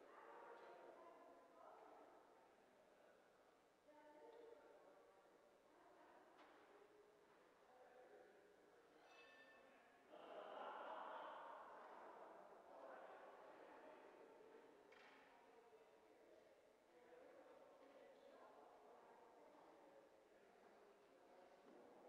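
People talk quietly in a large echoing hall.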